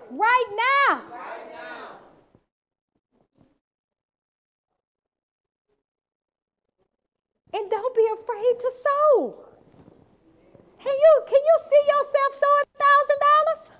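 A woman speaks with feeling into a microphone, heard through loudspeakers.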